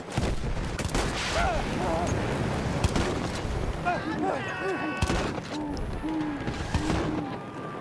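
Flames roar and crackle from a flamethrower.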